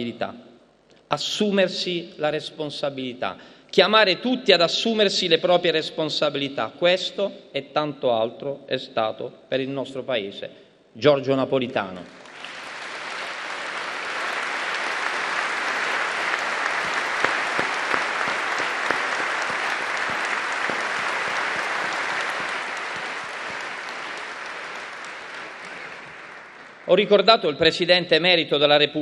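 A man speaks calmly into a microphone, heard over loudspeakers in a large hall.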